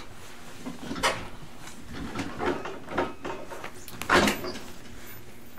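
An older man speaks calmly, close to the microphone.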